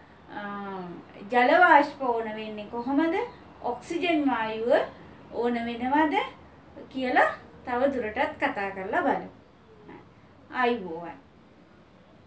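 A woman speaks calmly and clearly close by.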